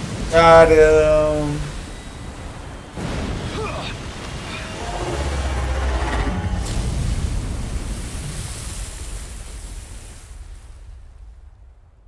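Waves crash and surge loudly.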